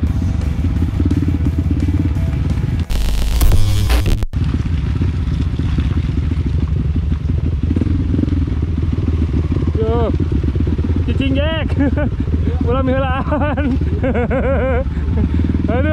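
A dirt bike engine rumbles and revs close by.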